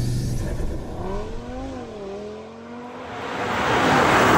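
A car engine drones in the distance, its pitch rising and falling.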